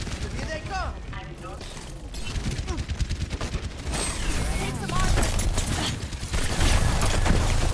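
Rapid gunfire rattles in a game battle.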